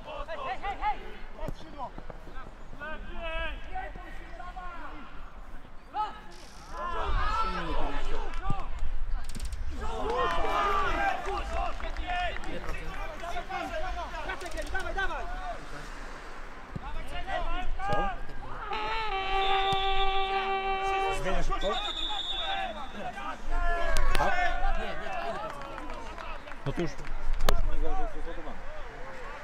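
Young men shout and call out across an open outdoor pitch.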